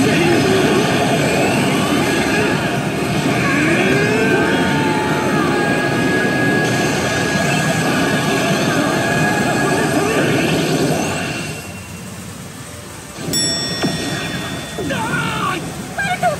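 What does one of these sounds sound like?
A pachinko machine plays loud music and sound effects.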